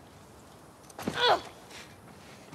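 A body falls and thuds heavily onto the ground.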